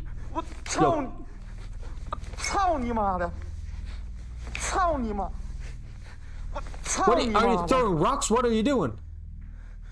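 A young man exclaims loudly in surprise close to a microphone.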